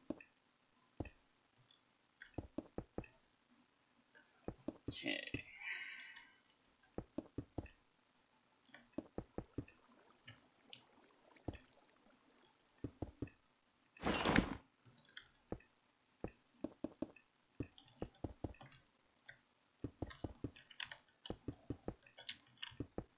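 Blocks are placed with quick, soft knocks, again and again.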